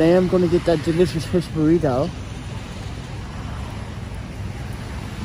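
Traffic rumbles and tyres hiss on a wet street outdoors.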